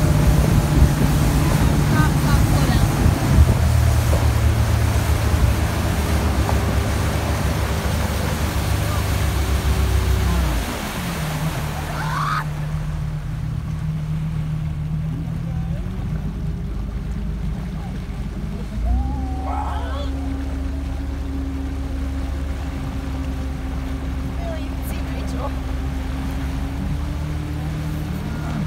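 A motorboat engine drones steadily, its pitch dropping and rising as it slows and speeds up.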